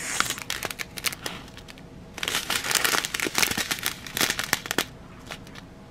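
Small hard beads rattle and clatter inside a plastic bag.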